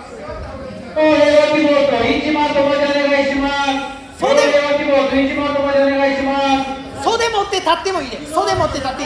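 A woman shouts loudly and at length nearby, in an echoing hall.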